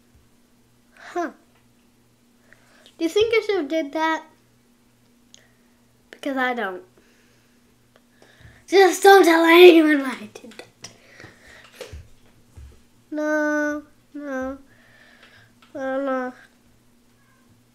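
A young boy talks excitedly in short bursts, close to a microphone.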